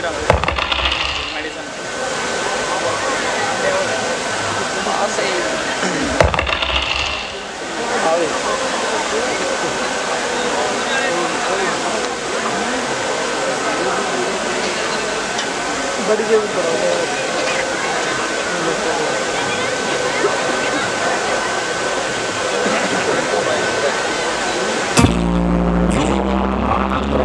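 Water sprays with a steady rushing hiss outdoors.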